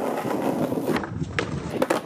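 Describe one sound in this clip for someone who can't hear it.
A skateboard's wheels roll and clack on stone.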